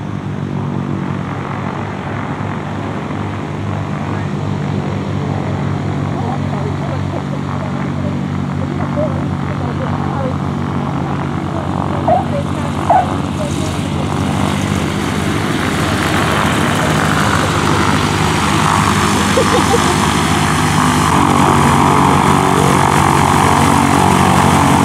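A propeller plane's engine drones steadily and grows louder as the plane comes closer.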